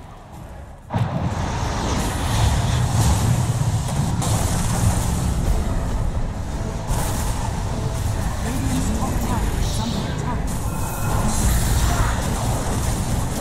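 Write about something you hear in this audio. Magic spells whoosh and crackle during a fast battle.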